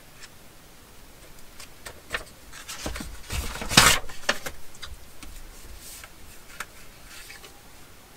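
Book pages rustle as hands turn them.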